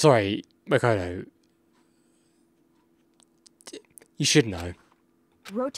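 A man speaks loudly and with animation, close to a microphone.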